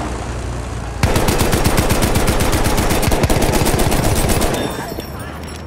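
A machine gun fires in rapid, steady bursts.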